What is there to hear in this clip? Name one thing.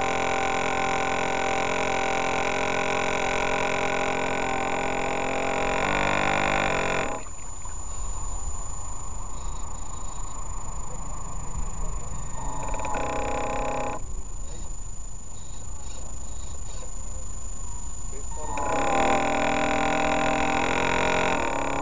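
A small electric boat motor whines loudly, rising and falling in pitch.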